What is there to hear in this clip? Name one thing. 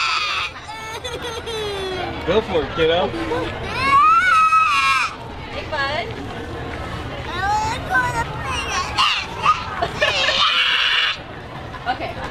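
A woman speaks calmly to a child nearby.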